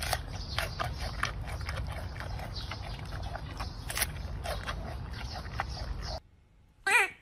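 A panda crunches and chews bamboo close by.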